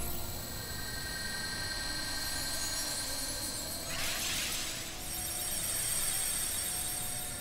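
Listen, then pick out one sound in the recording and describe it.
A bright, magical shimmer rings steadily.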